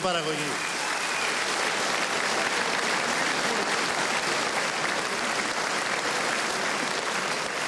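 A large crowd applauds and cheers loudly in a big hall.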